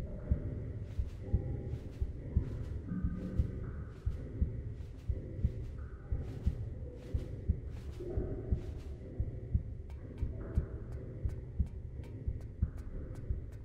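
Footsteps thud quickly and steadily on a metal floor.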